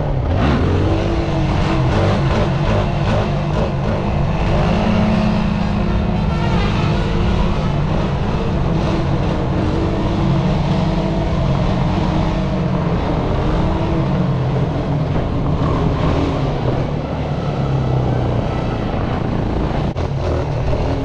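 A quad bike engine roars and revs up and down close by.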